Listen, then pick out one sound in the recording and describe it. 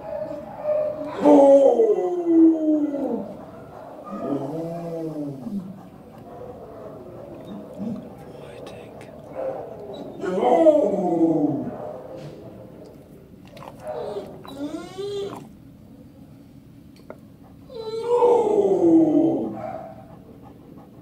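A dog whines and yelps up close in long, wavering cries.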